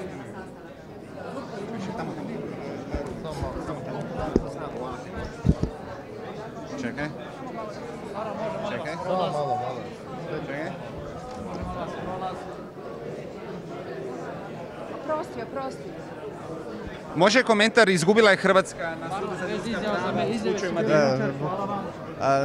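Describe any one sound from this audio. A crowd of people murmurs and chatters in a large echoing room.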